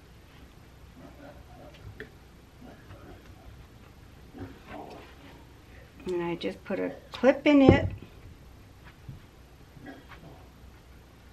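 An older woman talks calmly close by.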